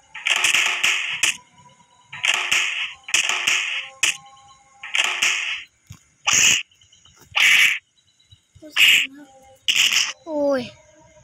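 Punches and kicks land with short, sharp swooshing hits.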